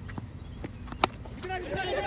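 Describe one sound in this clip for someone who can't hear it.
A cricket bat cracks against a ball.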